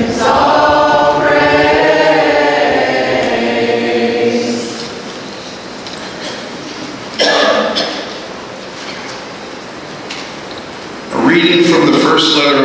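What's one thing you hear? An elderly man chants through a microphone in an echoing hall.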